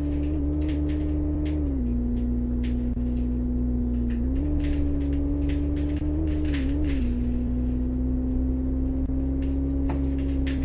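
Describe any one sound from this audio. A bus engine hums steadily, its pitch shifting up and down as the bus drives.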